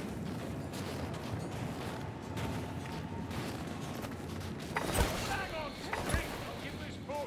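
A sword swishes through the air and strikes.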